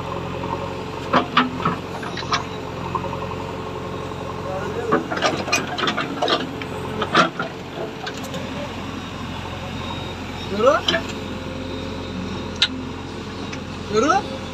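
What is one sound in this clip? A diesel engine hums steadily.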